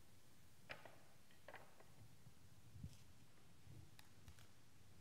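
Metal dishes clink softly on a table.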